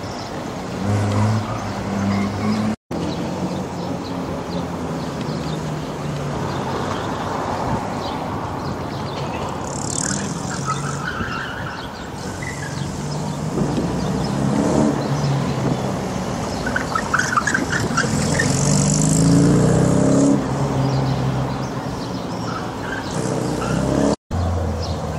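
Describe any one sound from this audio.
A sports car engine hums and revs as the car drives slowly past.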